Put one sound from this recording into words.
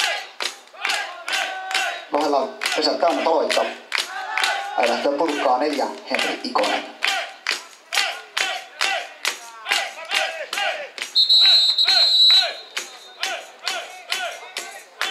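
Players clap their hands in a steady rhythm.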